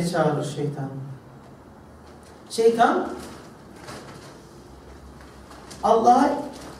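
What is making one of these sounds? A young man speaks calmly through a microphone, in short phrases with pauses, in a slightly echoing room.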